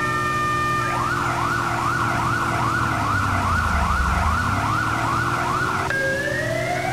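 A fire truck horn blares in a rapid pulsing pattern.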